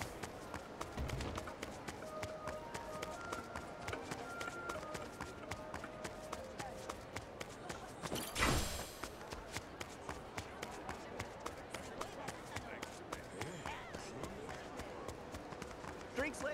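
Quick footsteps slap on pavement as a man runs.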